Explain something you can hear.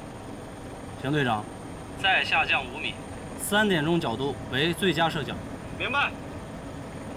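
A man speaks urgently over a radio.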